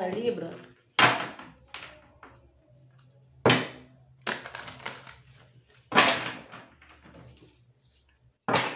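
Cards are shuffled and laid down.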